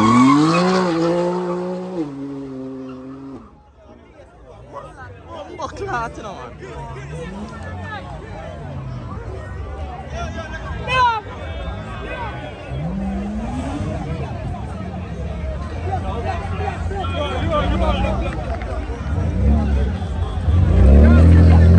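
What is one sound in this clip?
Car tyres screech as they spin on the road.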